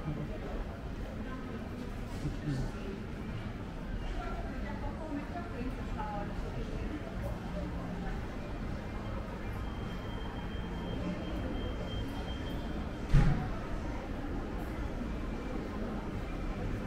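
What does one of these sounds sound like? Distant voices murmur through a large echoing hall.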